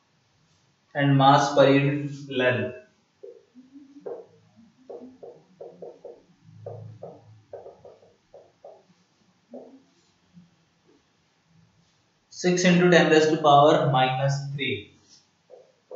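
A young man lectures in short bursts.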